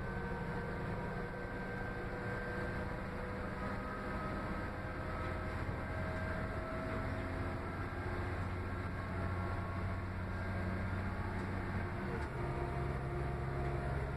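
A train rumbles and hums steadily as it travels along the track.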